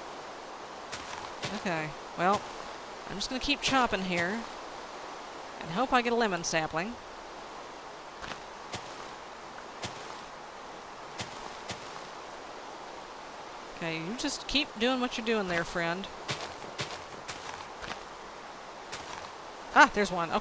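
Leaves crunch softly as blocks are broken, again and again.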